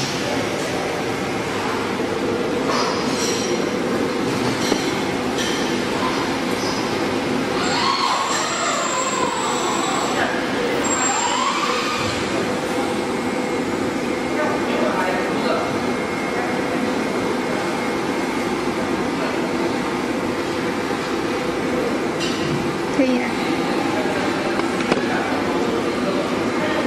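A packaging machine hums steadily.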